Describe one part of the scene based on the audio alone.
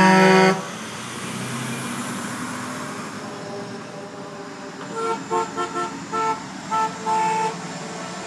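A second truck engine rumbles past.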